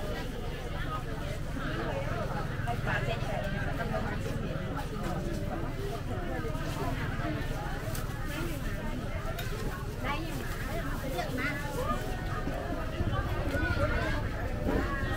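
A crowd of men and women chatter at close range.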